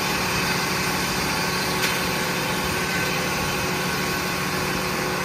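A sawmill machine runs with a steady, loud hum and rumble.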